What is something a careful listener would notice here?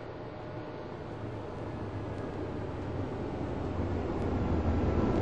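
A tram rumbles closer, growing louder.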